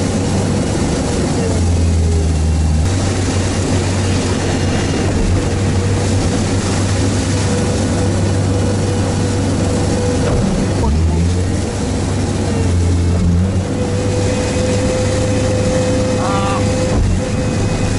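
Water splashes and sprays against the vehicle.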